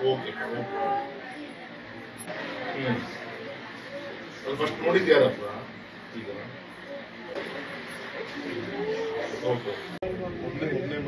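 A man talks on a phone.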